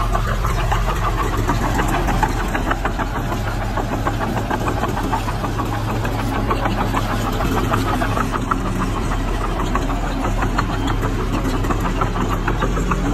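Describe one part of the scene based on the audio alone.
Soil and stones scrape and tumble ahead of a blade.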